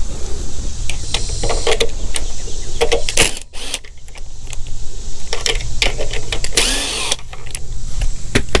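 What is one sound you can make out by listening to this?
Metal parts click and clink as bolts are handled.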